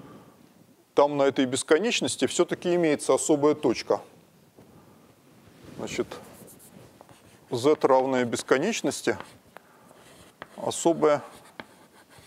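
A middle-aged man lectures.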